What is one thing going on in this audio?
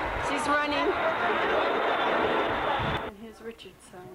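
An elderly woman talks close by.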